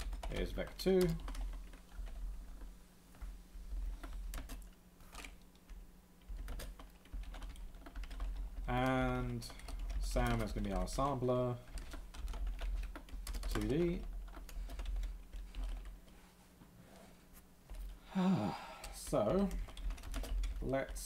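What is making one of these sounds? Computer keys click as a man types.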